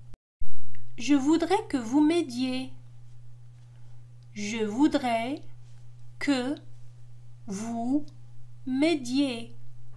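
A woman speaks slowly and clearly.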